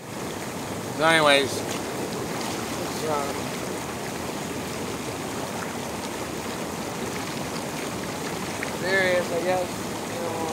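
A man speaks close by, in short bursts.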